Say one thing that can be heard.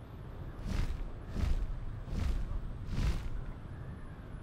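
Large wings beat with heavy whooshing gusts.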